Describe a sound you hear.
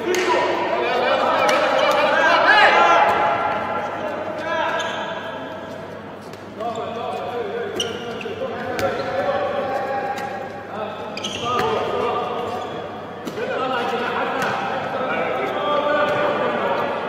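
A handball bounces on a hard court floor.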